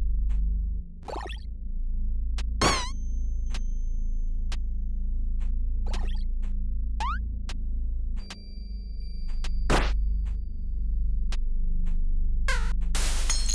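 Short game sound effects chirp and zap now and then.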